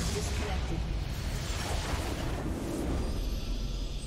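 Magic blasts crackle and boom in a fierce battle.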